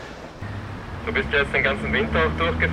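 A young man speaks into a handheld radio up close.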